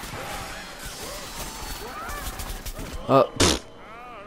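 Magic blasts zap and crackle in quick bursts.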